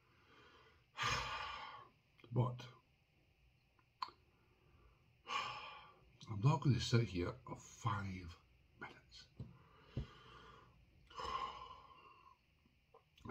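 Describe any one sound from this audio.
A middle-aged man speaks calmly and close to the microphone, in short bursts with pauses.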